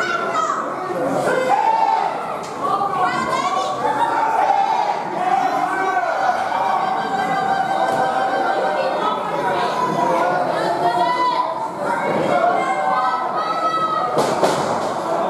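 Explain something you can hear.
A crowd of men and women talks and shouts loudly in an echoing hall.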